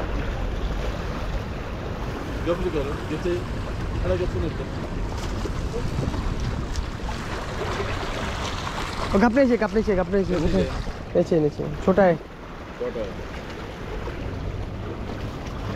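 Water laps and splashes against rocks.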